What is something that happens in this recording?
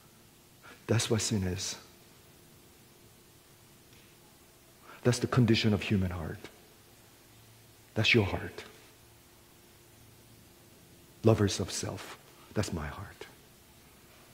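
A middle-aged man speaks with animation in short bursts through a microphone, with pauses between phrases.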